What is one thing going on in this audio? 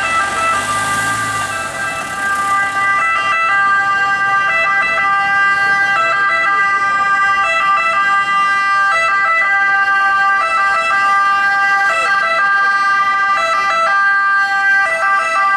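An ambulance siren wails loudly and close by, switching between tones.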